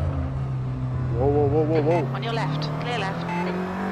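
Tyres screech as cars slide and spin.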